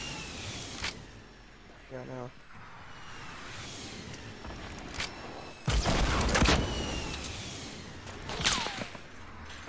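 Gunshots crack sharply, close by.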